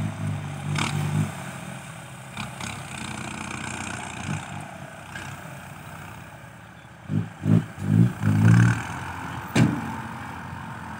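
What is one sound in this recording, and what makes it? A tractor engine chugs steadily nearby outdoors.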